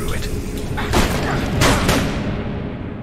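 A door is smashed open with heavy crashing blows.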